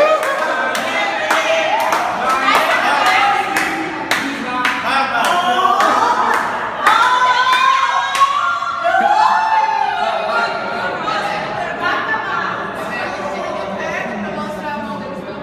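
A group of people sing together loudly nearby.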